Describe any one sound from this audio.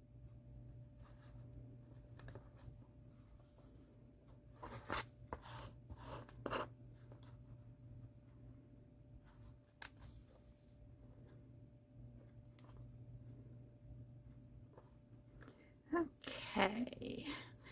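Thread is pulled through fabric with a soft rustle.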